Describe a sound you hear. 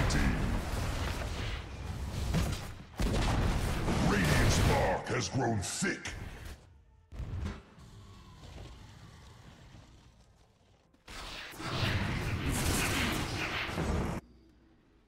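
Magic spells crackle and blast during a fight, in loud bursts.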